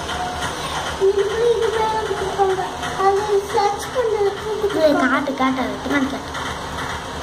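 A young girl talks close by in a high voice.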